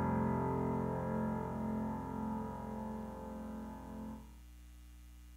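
Music from a piano fades out.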